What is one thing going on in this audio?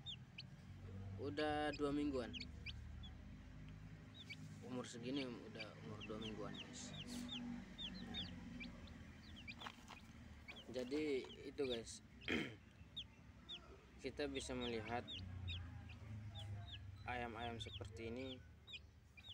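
Many chicks peep rapidly and shrilly, close by.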